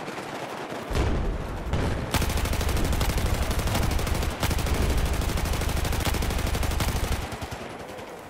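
A machine gun fires long rapid bursts close by.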